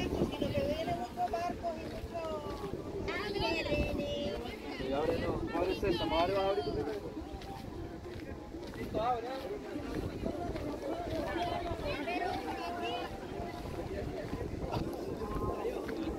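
Many people chatter and talk nearby outdoors.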